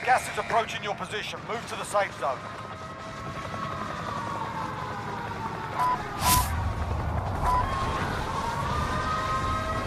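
Helicopter rotors thump nearby.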